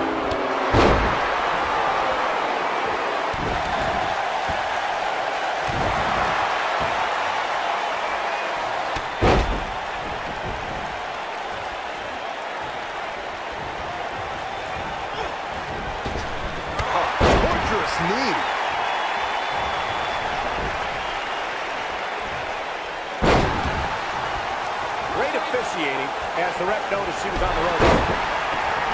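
Bodies slam hard onto a wrestling mat.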